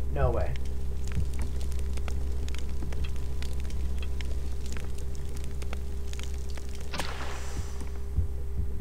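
A fire crackles and hisses.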